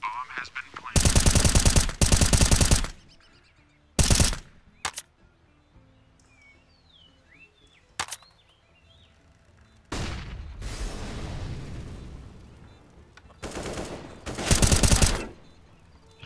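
Rapid rifle shots ring out in loud bursts.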